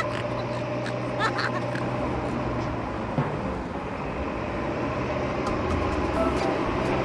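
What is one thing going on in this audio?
Plastic toy wheels crunch over dry dirt and twigs.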